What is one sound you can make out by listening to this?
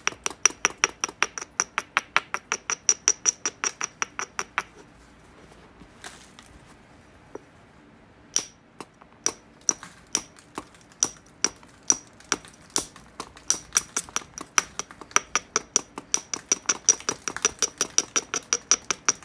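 A stone taps rapidly against a piece of glassy rock with sharp, ringing clicks.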